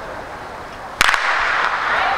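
A starting pistol fires once with a sharp crack.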